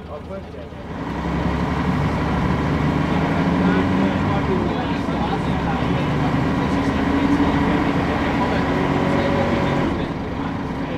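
A bus engine roars loudly as the bus pulls away.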